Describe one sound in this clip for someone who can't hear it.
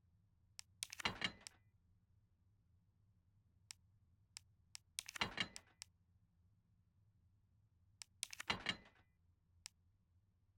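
Soft menu clicks tick in quick bursts.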